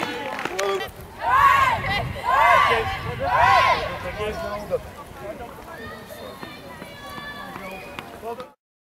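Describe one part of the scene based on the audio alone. Girls chat and call out to one another nearby.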